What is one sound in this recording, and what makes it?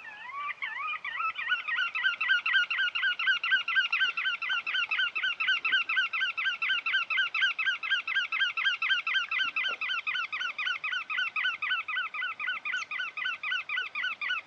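A shorebird calls in a fast, steady run of high, rising chattering notes.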